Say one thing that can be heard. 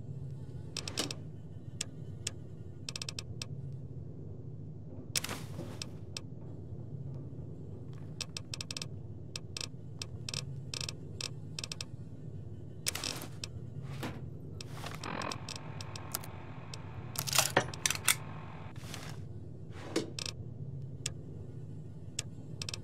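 Short menu clicks and ticks sound as items are scrolled and selected.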